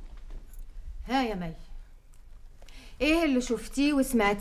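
A young woman speaks clearly and firmly.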